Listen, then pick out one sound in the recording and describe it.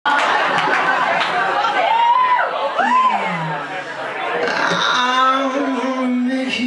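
A young man sings into a microphone, heard live in a room.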